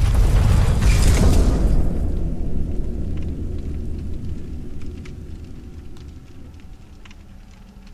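Torch flames crackle.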